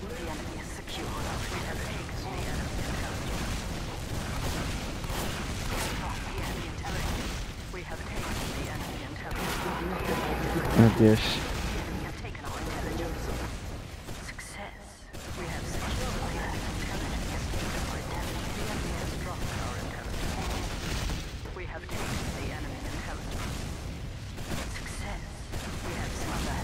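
Gunfire from a video game crackles throughout.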